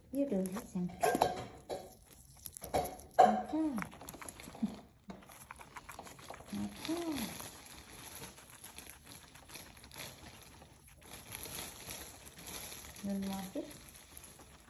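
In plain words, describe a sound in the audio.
A guinea pig squeaks in short high chirps.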